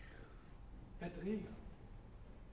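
A man calls out briefly.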